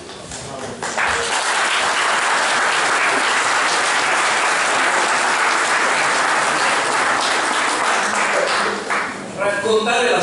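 An audience applauds loudly in a room.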